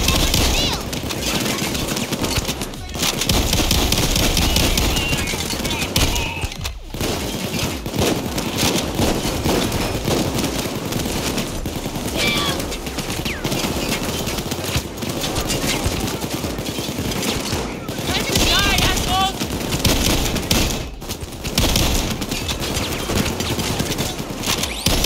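Rapid gunfire rattles and cracks in bursts.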